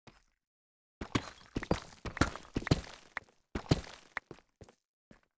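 A pickaxe chips rapidly at stone.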